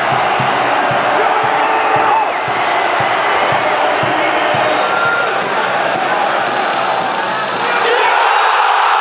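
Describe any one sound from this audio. A large stadium crowd chants and sings loudly close by.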